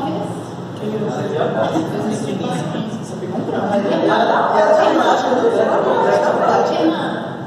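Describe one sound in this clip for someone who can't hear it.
Several young men chatter and laugh nearby.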